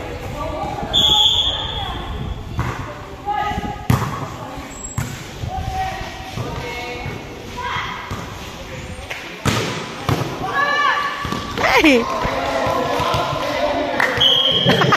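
A volleyball thumps off players' forearms.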